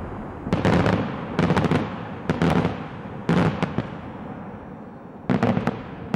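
Fireworks burst overhead in rapid bangs and crackles, echoing across open ground.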